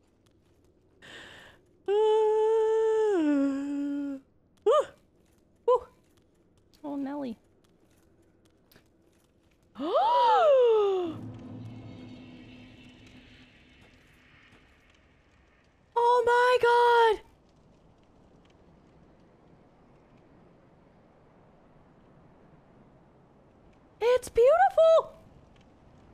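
A young woman sings short phrases close to a microphone.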